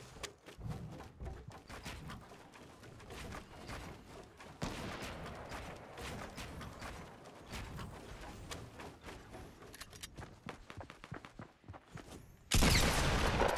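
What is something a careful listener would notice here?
Wooden walls and ramps snap into place in quick knocks.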